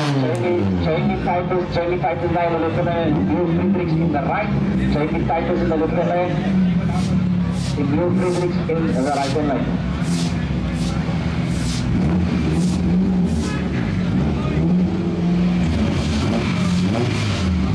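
A nearby car engine revs up and down repeatedly.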